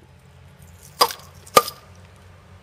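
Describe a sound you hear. Glass bottles clink sharply.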